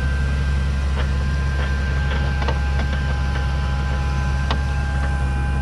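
Stones clink against the metal of a plough.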